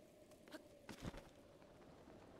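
A paraglider snaps open with a flap.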